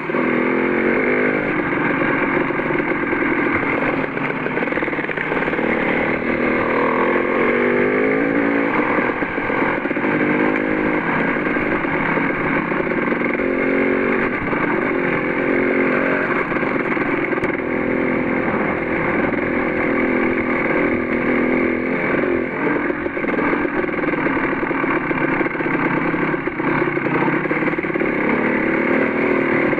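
A dirt bike engine revs and drones up close.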